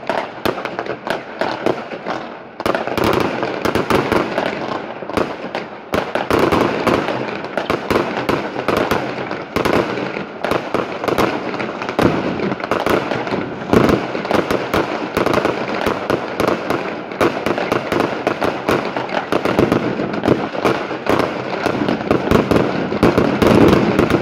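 Fireworks bang and crackle rapidly, near and far.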